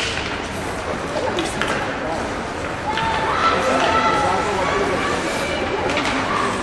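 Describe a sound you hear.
Children shout across a large echoing rink.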